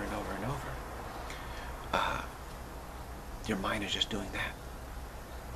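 A middle-aged man speaks calmly and close up, with pauses.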